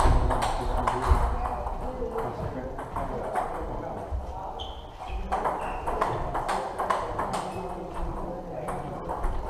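Table tennis balls click back and forth on tables and paddles in a large echoing hall.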